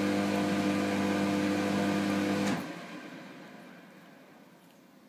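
A hand dryer blows with a loud, steady hum, then cuts off and winds down.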